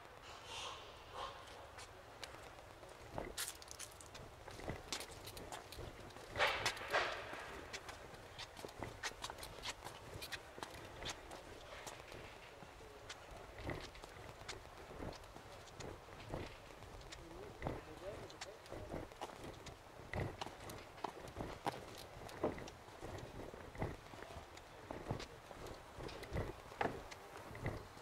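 Footsteps tap and thud steadily on a wooden walkway outdoors.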